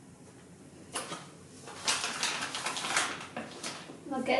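Flour pours from a paper bag into a metal bowl with a soft hiss.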